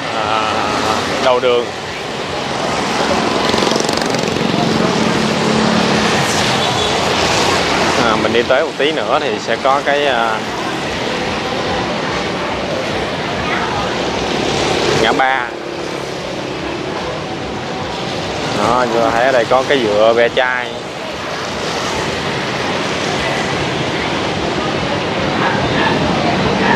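Motorbikes hiss past on a wet road.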